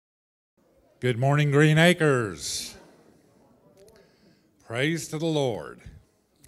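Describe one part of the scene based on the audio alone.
An older man speaks with animation through a microphone.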